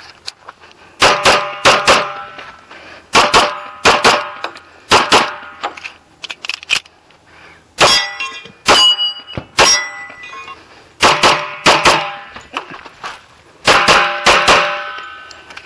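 A pistol fires loud shots in quick pairs outdoors.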